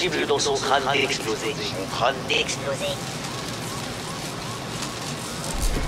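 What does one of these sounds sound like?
A man speaks through a crackling loudspeaker.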